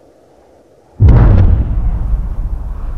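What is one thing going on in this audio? A huge boulder slams down with a deep, booming thud.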